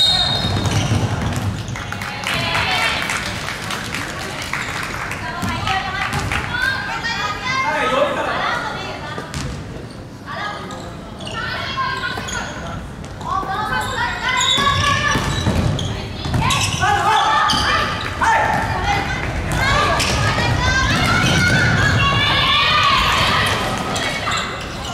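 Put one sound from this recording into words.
Young players on the bench cheer and shout together.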